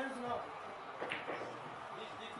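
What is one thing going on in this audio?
Billiard balls click against each other on a table.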